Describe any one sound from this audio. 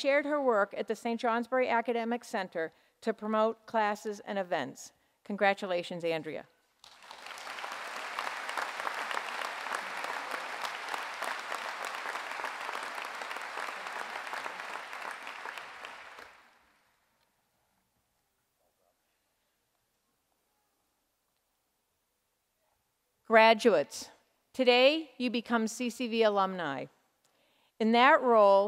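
An older woman speaks calmly into a microphone in a large hall.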